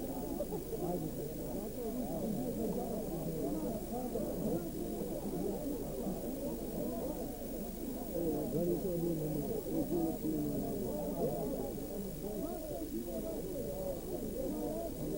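A crowd of men and women chatters close by.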